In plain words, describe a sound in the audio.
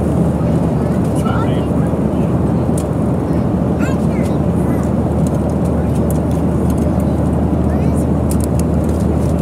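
A steady low roar of jet engines fills an aircraft cabin.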